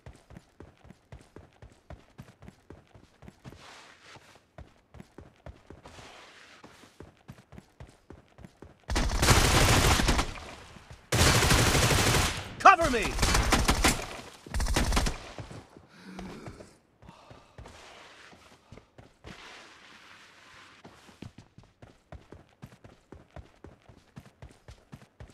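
Footsteps thud quickly on the ground as a game character runs.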